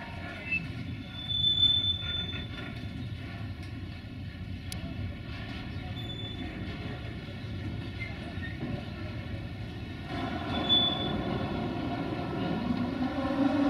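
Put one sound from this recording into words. Train wheels squeal and clatter on the rails.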